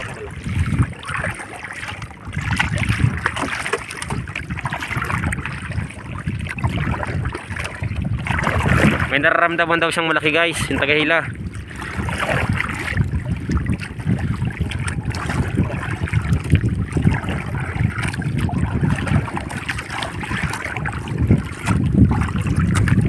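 Wind blows steadily over open water.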